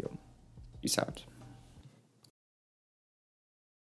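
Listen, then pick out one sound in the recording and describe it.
A phone is set down on a table with a soft tap.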